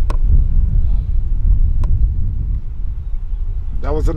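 A bat strikes a cricket ball with a sharp knock.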